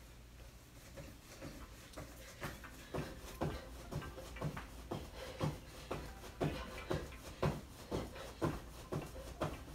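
Feet thump rhythmically on the floor as a woman does jumping jacks.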